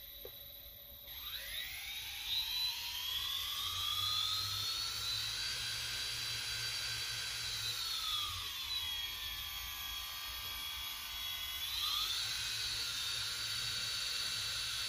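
Electric motors whine, rising in pitch, holding steady, then dipping and rising again.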